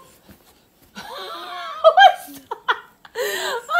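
A young girl chatters and squeals playfully close by.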